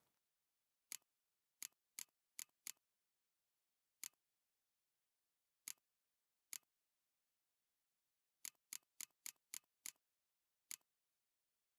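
Soft game menu clicks tick one after another.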